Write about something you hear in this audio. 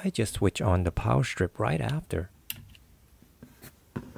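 A power strip switch clicks.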